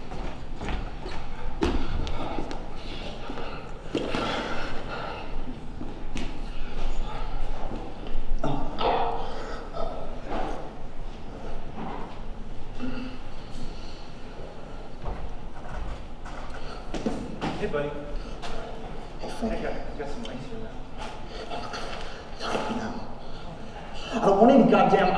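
A young man speaks with emotion in a large, echoing room.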